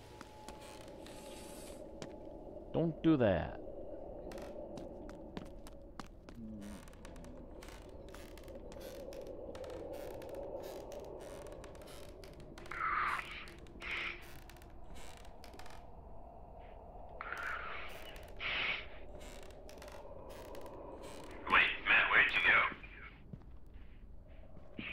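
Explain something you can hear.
Footsteps creak slowly across wooden floorboards.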